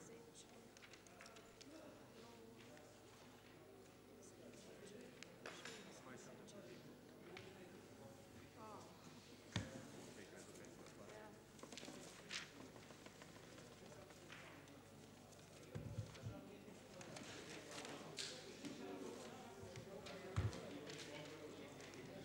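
A murmur of several adult voices talks at once in a room with some echo.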